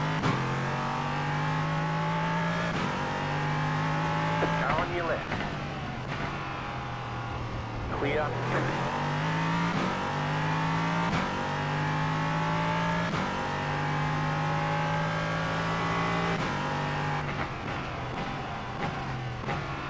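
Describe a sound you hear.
A racing car engine roars loudly, rising in pitch and dropping between gear changes.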